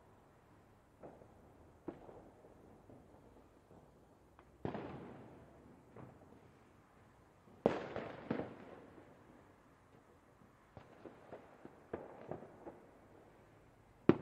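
Fireworks burst with deep booms and crackles in the distance.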